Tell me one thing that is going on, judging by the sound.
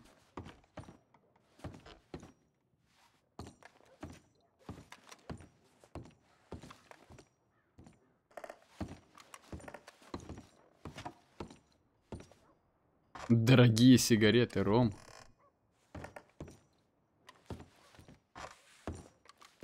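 Boots thud on a wooden floor in slow footsteps.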